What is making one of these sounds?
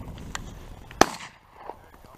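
A shotgun fires a loud, sharp blast close by.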